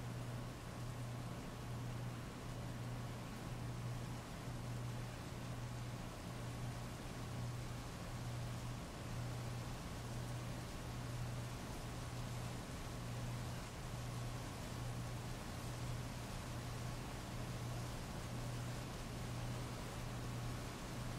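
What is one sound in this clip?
Heavy rain pours steadily onto wet pavement.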